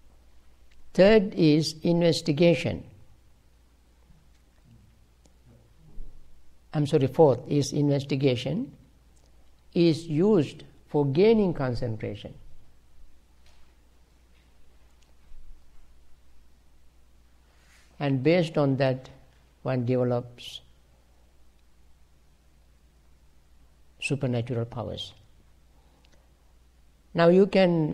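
An elderly man speaks calmly in short phrases, close by.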